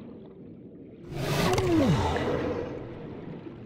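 A sea creature lets out a loud screech that drops in pitch.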